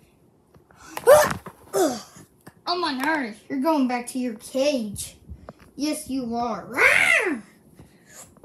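A child speaks in a high, silly puppet voice, close by.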